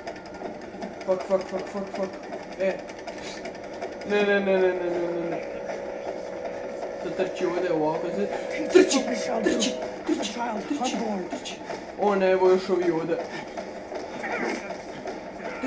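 A young man talks with animation into a nearby microphone.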